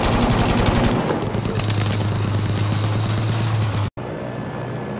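A tank engine rumbles at idle.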